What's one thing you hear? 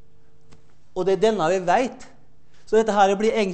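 A man lectures with animation, heard through a microphone.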